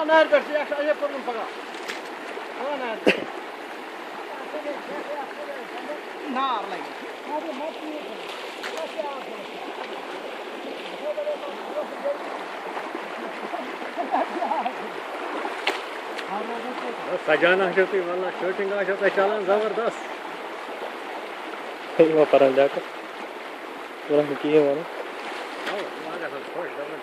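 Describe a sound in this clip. Water rushes and splashes over a shallow stream.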